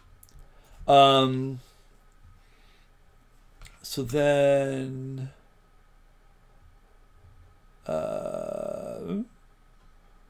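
A man speaks briefly into a nearby microphone.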